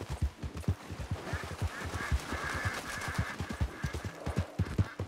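Water splashes as a horse wades through a stream.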